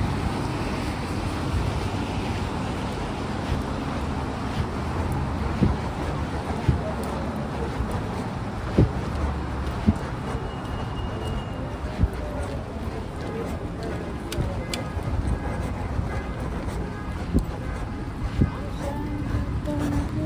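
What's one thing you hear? Footsteps tap on a wet pavement.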